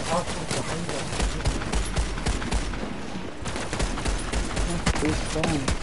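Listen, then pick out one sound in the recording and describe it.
Guns fire in rapid bursts of sharp shots.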